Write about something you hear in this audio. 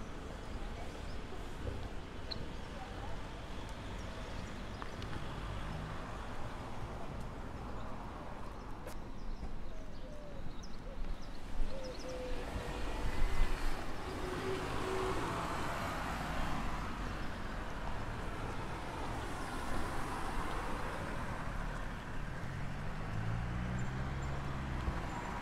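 Street traffic hums steadily in the open air.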